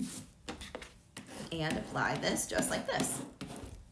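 A plastic scraper rubs and scratches across a sheet.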